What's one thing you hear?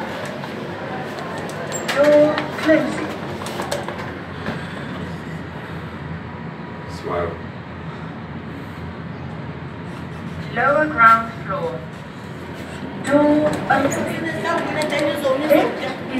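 Elevator buttons click as they are pressed.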